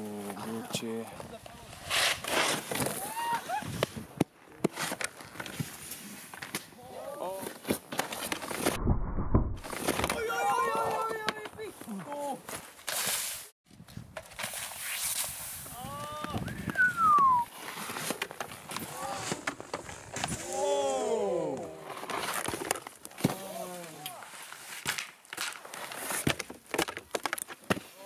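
Skis scrape and slide over snow.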